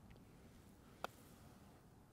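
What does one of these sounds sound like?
A putter softly taps a golf ball.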